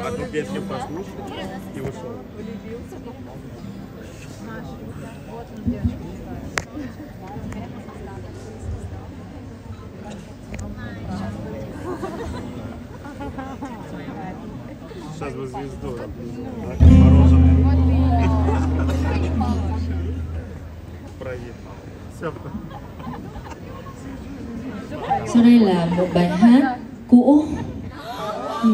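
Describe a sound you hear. An audience murmurs and chatters nearby.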